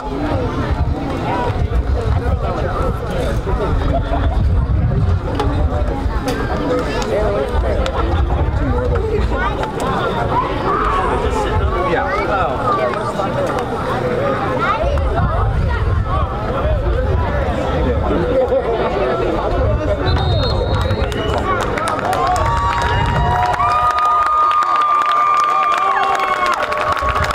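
Teenage boys call out and talk across an open field, nearby and far.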